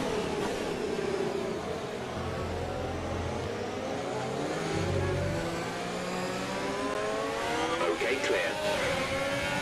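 A Formula One car engine revs high and shifts up through the gears.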